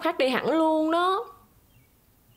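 A woman speaks with a rising, questioning tone nearby.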